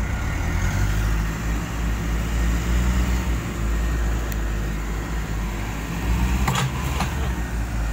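A truck engine rumbles.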